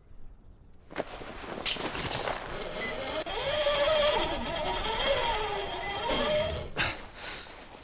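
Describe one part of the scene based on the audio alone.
A pulley whirs and screeches rapidly along a taut cable.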